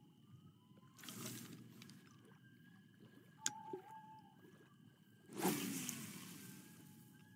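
A fishing line whooshes out as a rod is cast.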